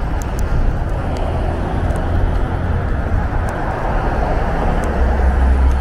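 A car drives past close by.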